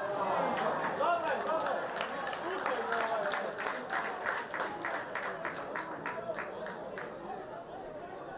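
A crowd of spectators claps in a fast, steady rhythm.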